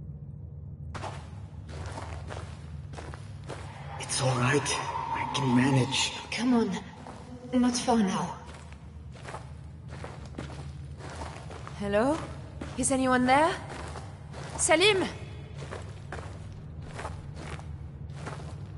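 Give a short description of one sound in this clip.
Footsteps crunch on rough gravel.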